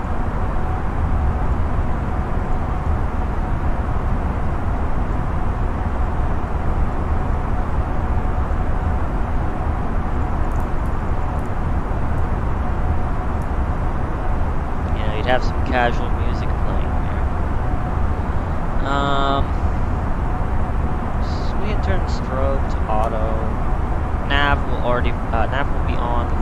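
A jet airliner's engines drone steadily.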